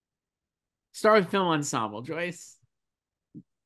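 A man speaks cheerfully over an online call.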